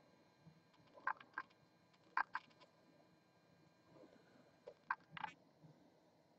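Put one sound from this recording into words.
A plastic case clicks and taps as it is handled.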